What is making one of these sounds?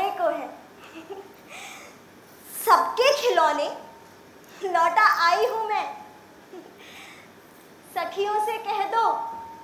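A young woman recites with expression through a microphone in an echoing hall.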